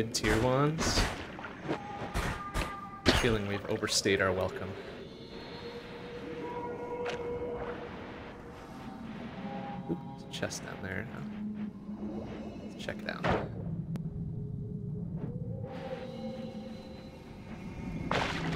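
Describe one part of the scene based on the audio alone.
Video game sound effects and music play steadily.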